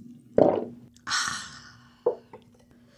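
A young woman exhales with a satisfied sigh close to a microphone.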